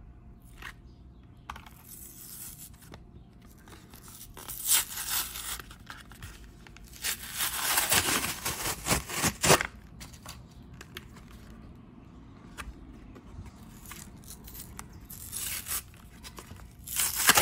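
Plastic packaging crinkles and crackles as it is handled.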